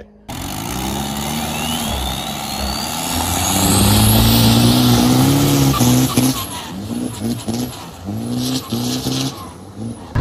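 Water sprays and hisses behind a speeding boat.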